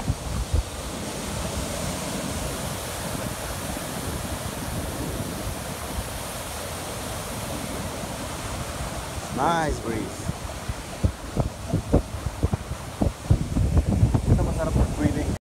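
Waves surge and break steadily onto a beach.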